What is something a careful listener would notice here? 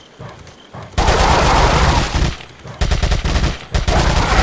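A gun fires in rapid bursts, loud and sharp.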